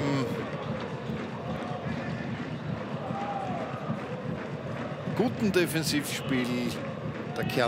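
A large stadium crowd chants and cheers steadily outdoors.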